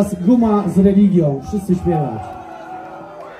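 A crowd of young people shouts and cheers outdoors.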